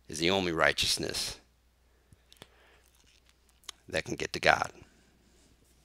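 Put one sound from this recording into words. A man talks with animation close to a headset microphone.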